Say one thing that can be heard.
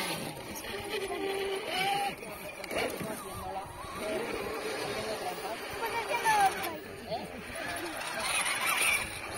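Plastic tyres scrape and crunch on rock and gravel.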